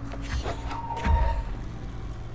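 A heavy object crashes loudly.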